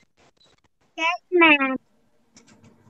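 A young girl speaks briefly through an online call.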